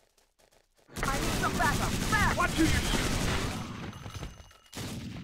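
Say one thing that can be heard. An automatic rifle fires in rapid bursts.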